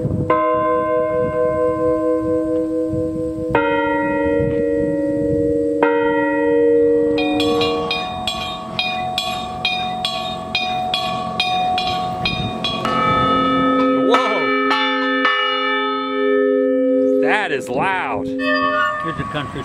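Large metal bells ring out one after another, their tones humming and fading slowly outdoors.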